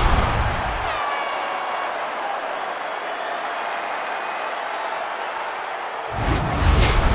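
A crowd cheers and roars in a large stadium.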